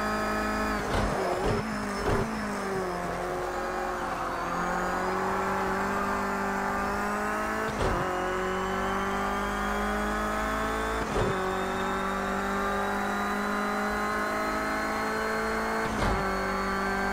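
Gears shift with sharp clunks.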